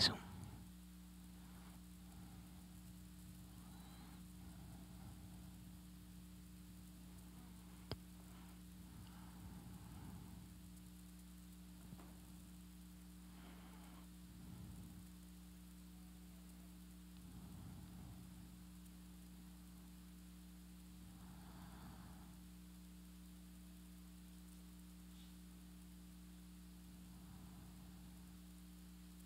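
A middle-aged man speaks slowly and quietly into a microphone, with long pauses.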